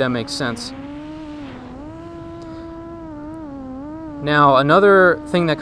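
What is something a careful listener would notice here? A small drone's motors whine steadily, rising and falling in pitch and surging loudly near the end.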